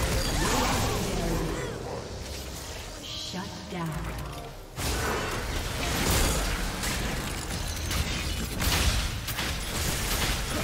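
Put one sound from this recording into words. Magic spells crackle and boom in a fast battle.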